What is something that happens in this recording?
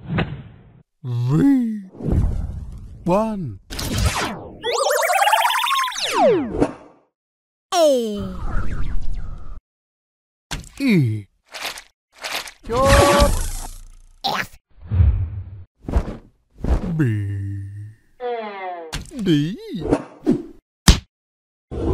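High, squeaky cartoon voices speak and shout with animation.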